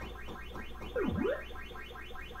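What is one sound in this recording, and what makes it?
A video game sounds a quick swooping blip.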